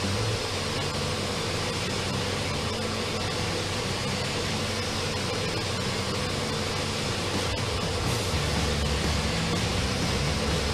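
A pressure washer sprays water in a steady, hissing rush.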